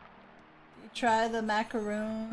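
A young woman exclaims loudly close to a microphone.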